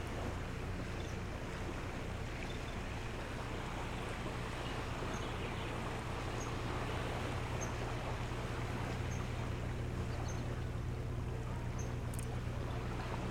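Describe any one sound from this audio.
A bird chirps softly in short, high calls.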